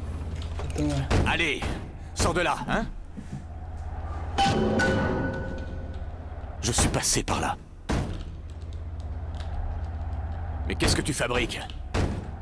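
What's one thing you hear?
Knocks rap on a wooden door.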